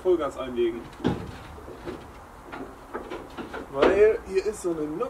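Metal tools clank against a diesel locomotive engine.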